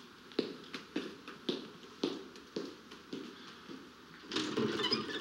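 Footsteps knock on a hard floor.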